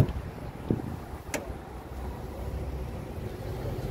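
A truck door latch clicks open.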